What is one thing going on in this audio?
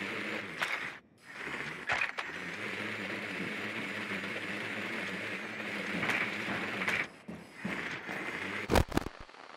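A small motor hums steadily.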